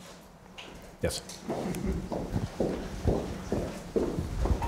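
A second young man speaks into a microphone.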